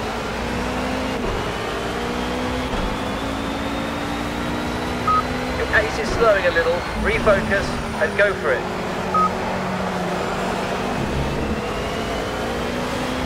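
A racing car engine roars at high revs, climbing through the gears.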